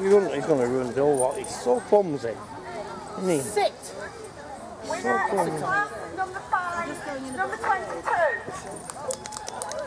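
An older woman speaks calmly close by.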